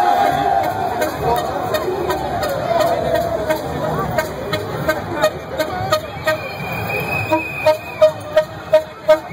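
A crowd of people talks and shouts loudly nearby.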